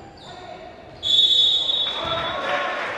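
A referee's whistle blows sharply in an echoing hall.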